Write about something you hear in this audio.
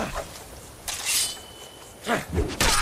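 Metal weapons clash and ring in a fight.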